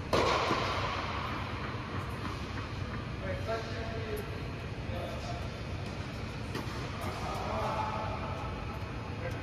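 Tennis balls are struck with rackets, with each hit echoing in a large hall.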